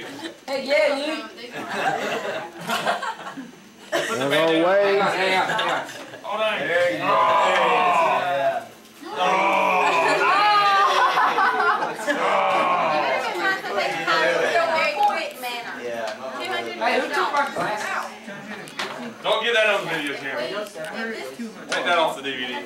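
A young man talks with animation to a group in a room.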